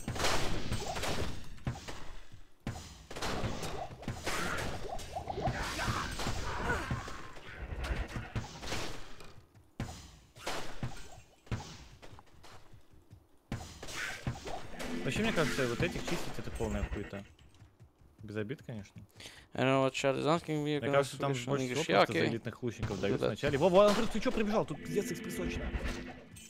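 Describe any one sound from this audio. Magic spells burst and crackle in quick blasts.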